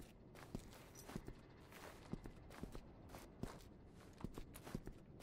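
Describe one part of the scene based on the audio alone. Footsteps thud on a hard floor at a walking pace.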